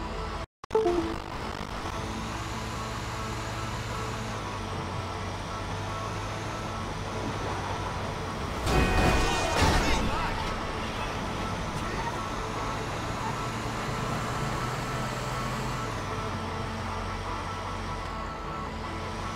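A heavy truck engine rumbles steadily as it drives along a road.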